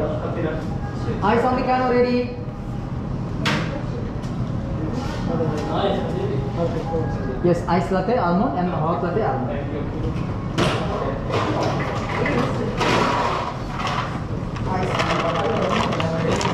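Men talk nearby in a busy, echoing room.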